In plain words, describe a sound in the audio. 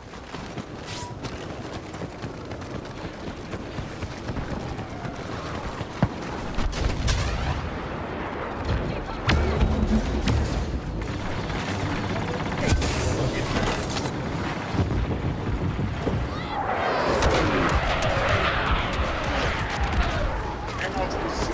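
Blaster shots fire in sharp bursts.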